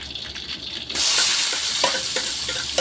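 Food drops into hot oil with a sudden loud burst of sizzling.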